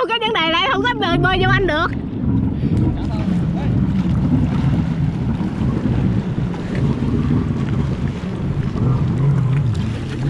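A jet ski engine rumbles and roars as it pulls away.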